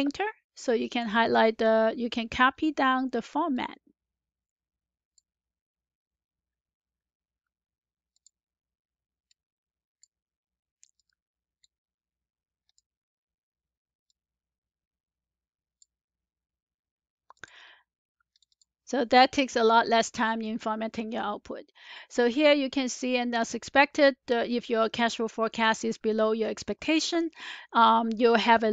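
A woman speaks calmly and clearly into a headset microphone, close up.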